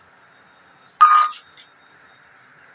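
A cup clatters against a hand near the microphone.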